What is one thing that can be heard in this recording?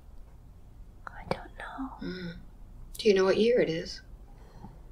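An older woman moans in pain close by.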